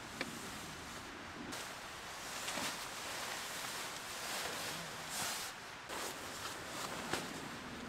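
A sleeping bag rustles as a person climbs out of it.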